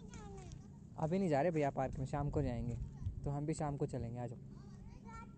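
A small child chatters loudly nearby.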